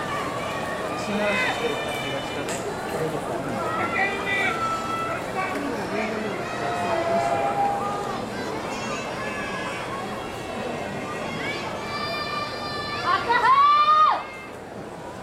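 A man calls out in a loud, drawn-out chanting voice.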